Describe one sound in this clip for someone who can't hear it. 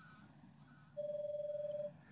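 A steady electronic beep sounds briefly.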